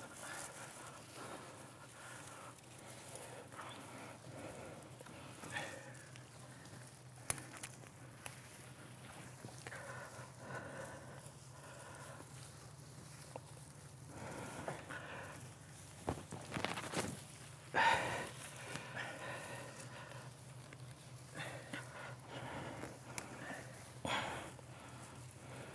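Pine needles rustle as branches are handled.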